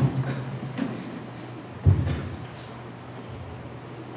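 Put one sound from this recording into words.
A book thumps onto a wooden lectern.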